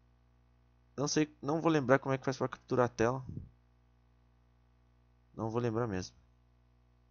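A young man speaks casually into a microphone, close by.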